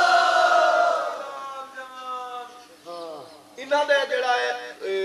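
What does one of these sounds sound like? A man chants loudly and with feeling through a microphone.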